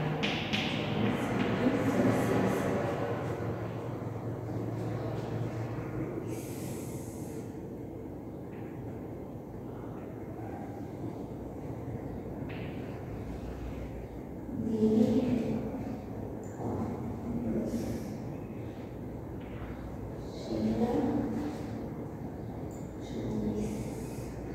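A woman talks calmly.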